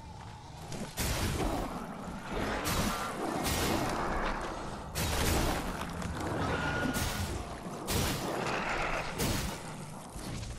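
A sword slashes and strikes in a quick run of heavy blows.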